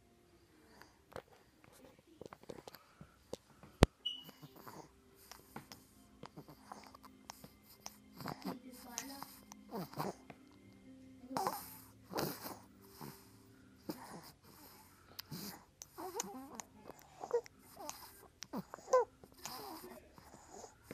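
A sleeping baby sucks softly on a pacifier, close by.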